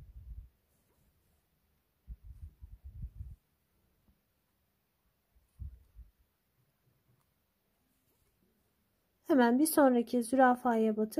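Thread rustles softly as it is pulled through cloth with a needle.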